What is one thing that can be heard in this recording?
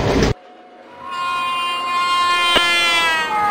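A locomotive horn blares loudly as the train approaches.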